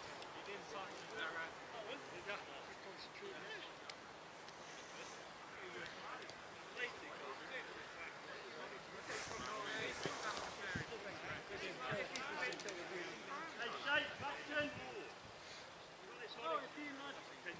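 Several players shout and call to each other across an open field, distant.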